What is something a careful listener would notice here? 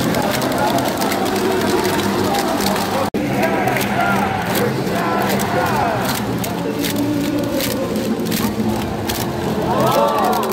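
Fans clap along rhythmically.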